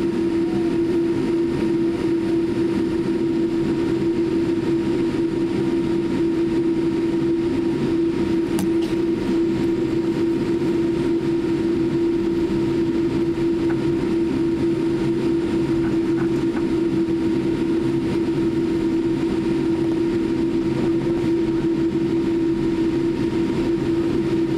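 Tyres rumble over the ground as an airliner taxis.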